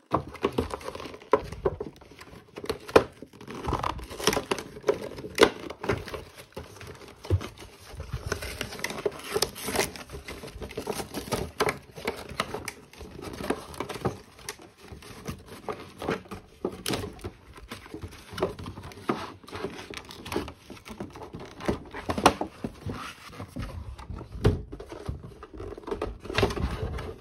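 Plastic packaging crinkles and rustles as hands handle a boxed doll.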